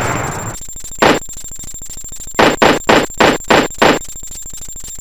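A gun fires in quick bursts.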